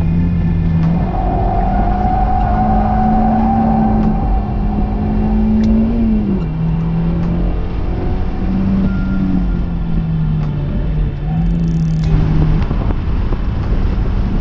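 Tyres roar on tarmac.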